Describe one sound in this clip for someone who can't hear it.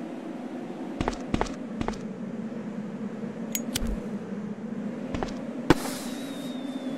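Footsteps thud on a hard floor.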